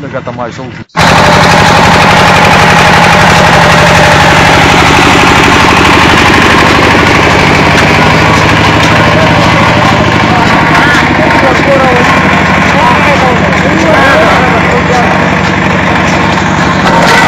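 A small engine runs loudly with a steady, fast chugging.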